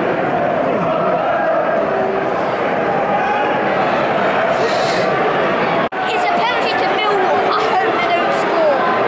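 A large stadium crowd chants and sings loudly all around.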